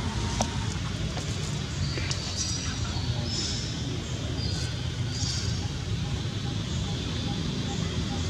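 A monkey gnaws and scrapes at a coconut shell with its teeth.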